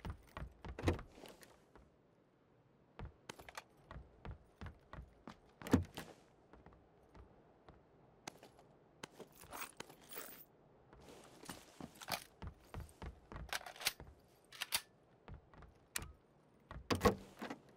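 Footsteps thud steadily on wooden floors.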